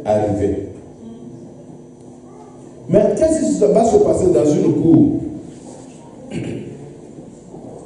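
A man preaches with animation into a microphone, heard through loudspeakers in a large room.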